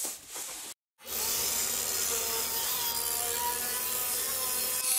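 A drill bit grinds into a hard crust.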